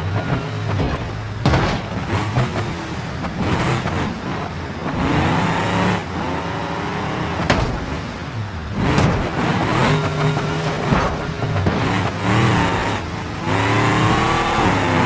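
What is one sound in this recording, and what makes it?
A car engine revs and whines, rising and falling in pitch.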